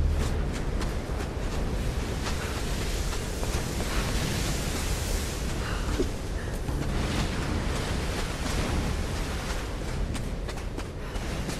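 Footsteps crunch quickly over sand and rock.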